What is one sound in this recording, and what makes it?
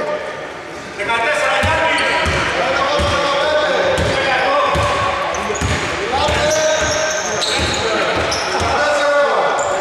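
A basketball bounces with hollow thuds in an echoing hall.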